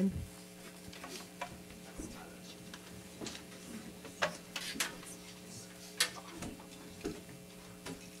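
Music stands and equipment knock and clatter as musicians move about.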